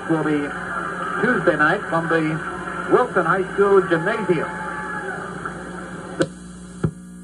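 A stereo plays a song with singing through its speaker, then stops abruptly.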